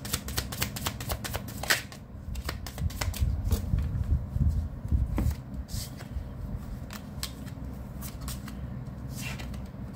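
Playing cards rustle and slap as they are handled on a table.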